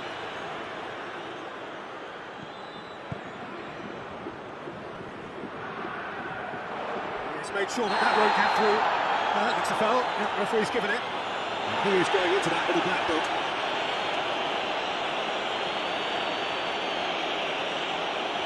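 A stadium crowd roars steadily, swelling loudly partway through.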